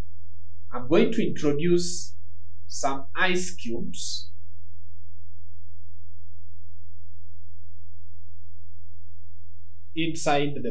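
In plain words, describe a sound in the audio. A man speaks calmly and clearly into a close microphone.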